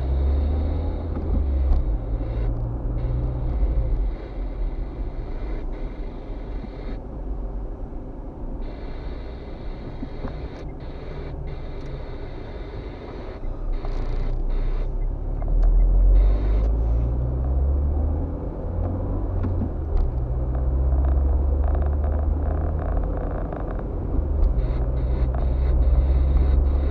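Tyres roll over a road surface.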